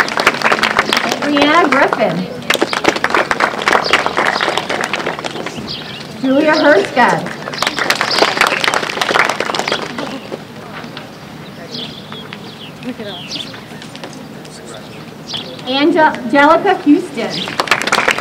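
A woman reads out names through a loudspeaker outdoors.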